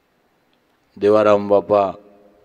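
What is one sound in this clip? A middle-aged man sings a long held note loudly through a microphone, in a large echoing hall.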